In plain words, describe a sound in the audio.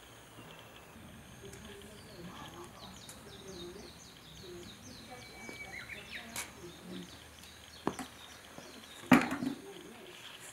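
Fired clay cups are set down on a wooden board.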